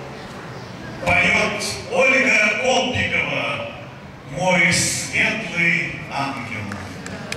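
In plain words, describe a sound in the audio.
A man speaks through a loudspeaker outdoors, announcing.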